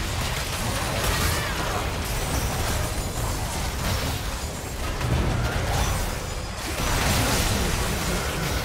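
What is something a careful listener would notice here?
Spell effects crackle and burst in a fantasy video game battle.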